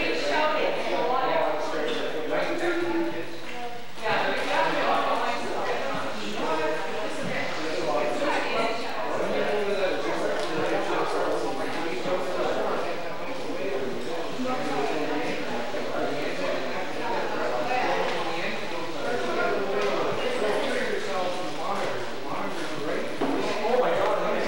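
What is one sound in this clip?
Teenagers sing together through microphones.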